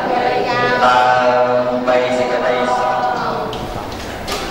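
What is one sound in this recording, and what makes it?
A group of people chant together in unison in an echoing room.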